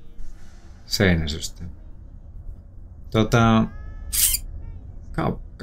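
A young man talks with animation into a close microphone, in short bursts.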